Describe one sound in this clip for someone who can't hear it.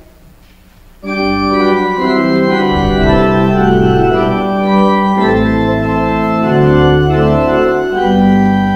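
A piano plays a slow, steady melody.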